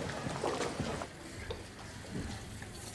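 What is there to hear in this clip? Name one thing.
Juice pours into a glass.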